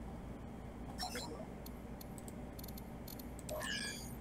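Short electronic blips sound as a menu opens.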